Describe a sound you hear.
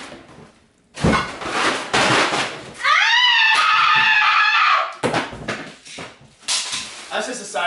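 Cardboard boxes rustle and thump as someone rummages through them.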